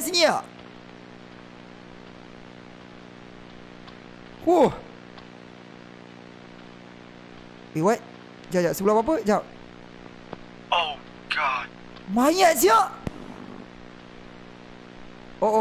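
A young man speaks in short, excited bursts close to a microphone.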